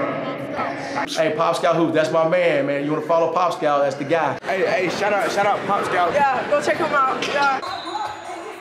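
A man talks cheerfully and laughs, close by.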